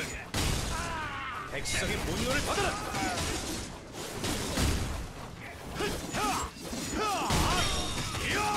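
Sword blows clash and thud in quick bursts.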